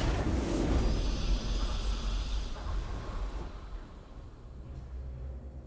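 A triumphant game fanfare swells and then slowly fades.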